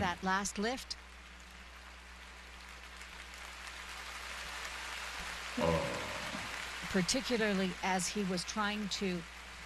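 A crowd cheers and applauds in a large arena.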